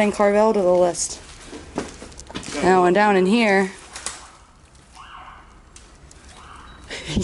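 Papers and debris rustle and scrape as they are moved by hand.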